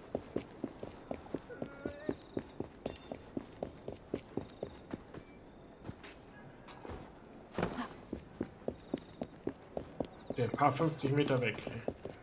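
Quick footsteps run on hard ground.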